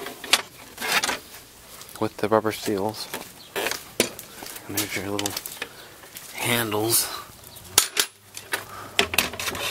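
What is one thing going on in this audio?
Hard plastic trim knocks and rattles as it is handled.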